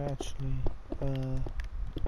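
A block breaks apart with a crumbling crunch in a video game.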